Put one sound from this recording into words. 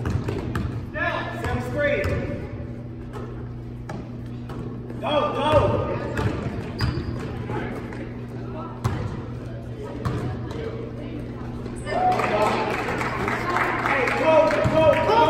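A crowd cheers and shouts in an echoing gym.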